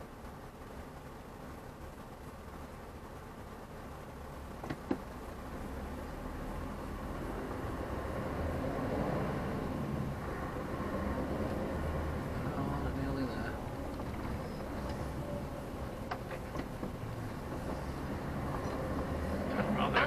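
A bus engine rumbles and grows louder as the bus pulls away.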